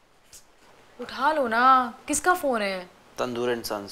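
A woman speaks in a questioning tone close by.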